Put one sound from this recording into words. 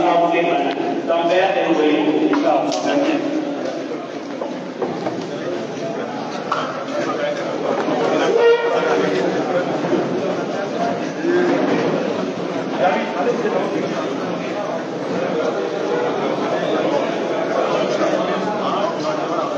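A crowd of men talks and calls out in a lively, echoing room.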